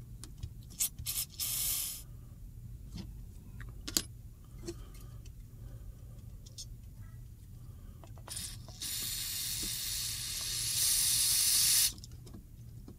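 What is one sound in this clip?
An aerosol spray can hisses in short and long bursts.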